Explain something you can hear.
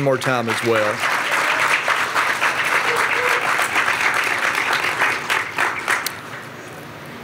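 An audience claps.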